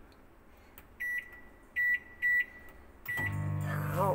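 A microwave beeps several times as buttons are pressed.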